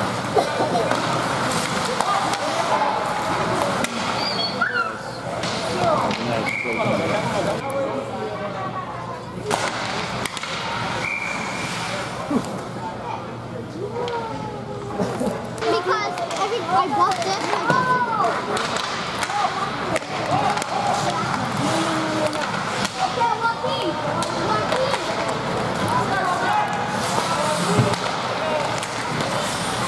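A crowd of spectators chatters and calls out in an echoing arena.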